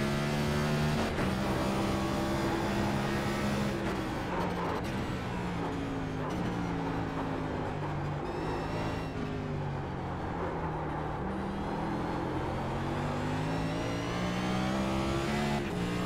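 A race car engine roars loudly, revving up and down through gear changes.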